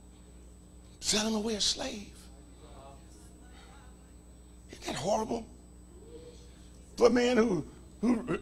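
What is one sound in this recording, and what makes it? An older man preaches with animation into a microphone, in bursts with pauses.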